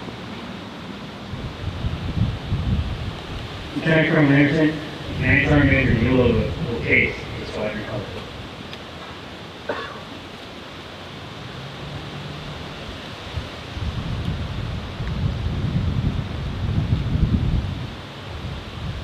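Wind buffets the microphone in gusts.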